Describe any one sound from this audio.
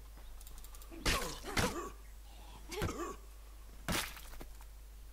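Blunt weapons strike bodies with heavy thuds.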